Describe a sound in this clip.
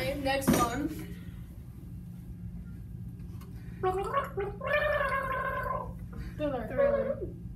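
A young girl speaks and squeals with animation close by.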